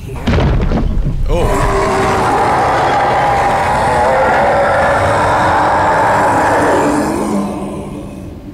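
A huge beast growls and roars loudly.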